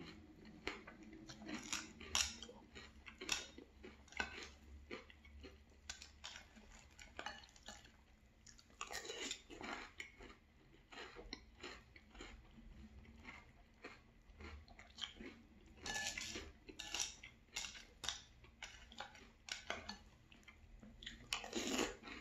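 A spoon clinks and scrapes against a glass bowl.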